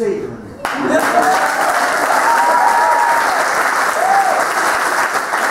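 Guests cheer and whoop.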